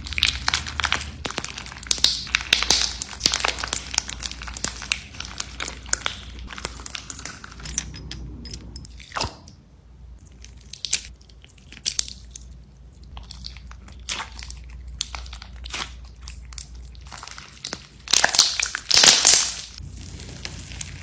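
Crunchy slime crackles and pops as hands squeeze it.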